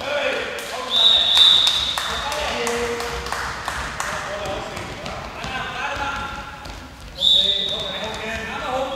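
A referee's whistle blows sharply in an echoing hall.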